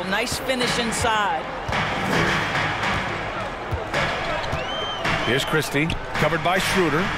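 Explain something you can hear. A crowd cheers and roars in a large arena.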